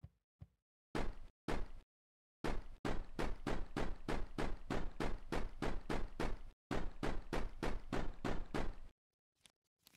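Rapid electronic thumps repeat fast and steadily during a tapping game.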